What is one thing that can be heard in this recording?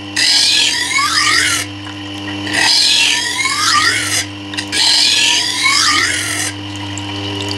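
A metal blade grinds and screeches against a turning stone wheel in short bursts.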